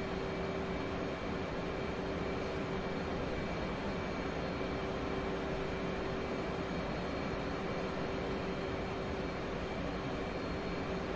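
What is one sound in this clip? A jet engine roars steadily with a low constant hum.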